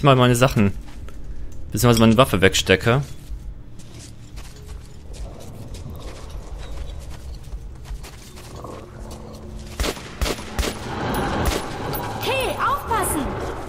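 Footsteps crunch on gravel and debris.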